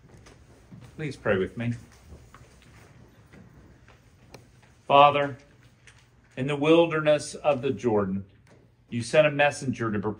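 An older man speaks calmly into a microphone in a reverberant hall.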